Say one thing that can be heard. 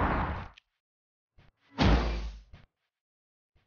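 Short electronic whooshing bursts come and go.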